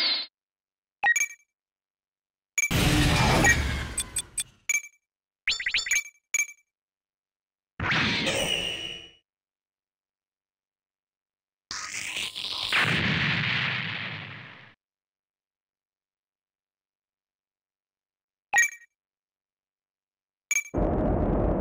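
Short electronic menu blips sound.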